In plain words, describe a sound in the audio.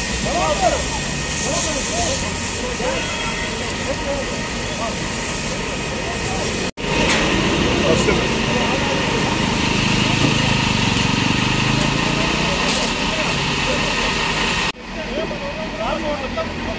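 Water from a fire hose sprays with a steady hiss.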